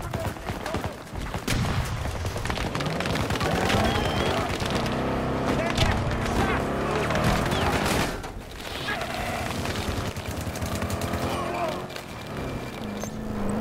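An armoured vehicle engine rumbles and roars as it drives over rough ground.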